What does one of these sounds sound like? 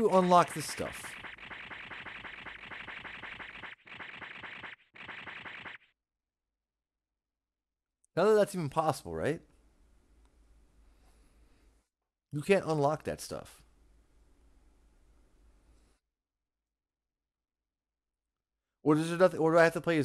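A young man talks with animation, close to a microphone, in short bursts.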